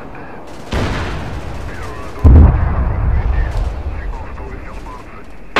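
Explosions boom in low, heavy bursts.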